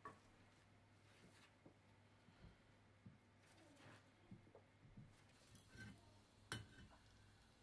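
A hand tool scrapes and knocks against brick.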